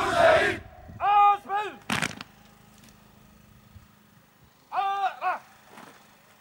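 A man shouts short commands loudly outdoors.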